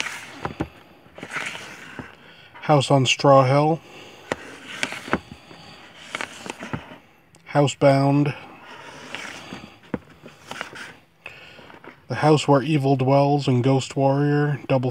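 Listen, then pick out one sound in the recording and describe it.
Plastic disc cases click and rattle as they are pulled from a shelf.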